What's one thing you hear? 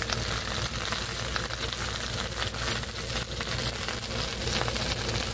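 Chicken sizzles and crackles in hot fat.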